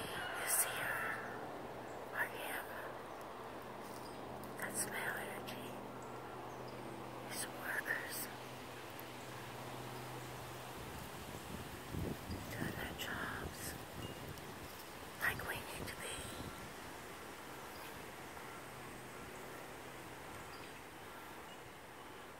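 Leaves rustle softly in a light breeze outdoors.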